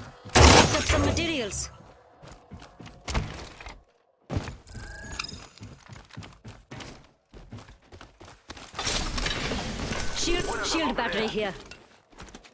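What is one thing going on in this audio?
Footsteps tap quickly on a hard metal floor.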